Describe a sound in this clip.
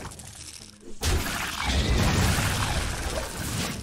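A game attack lands with a loud, booming magical blast.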